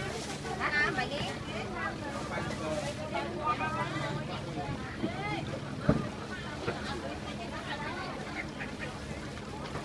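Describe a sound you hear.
Air pumps bubble and gurgle steadily through water.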